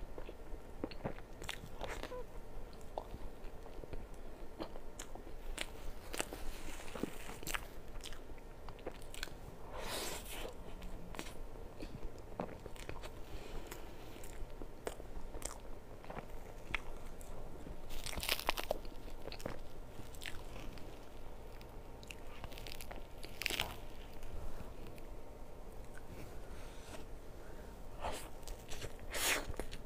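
A young woman eats soft cake with wet, smacking mouth sounds close to the microphone.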